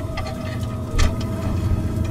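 A metal device clunks as it is set down on rock.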